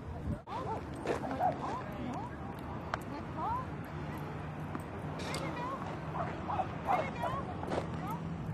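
A woman calls out to a dog from a distance outdoors.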